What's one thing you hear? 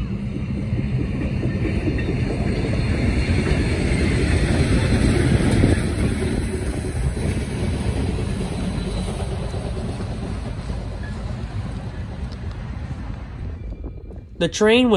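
A steam locomotive chugs past with a heavy, rumbling roar that slowly fades.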